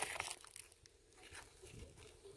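Gravel crunches and scrapes under a hand digging.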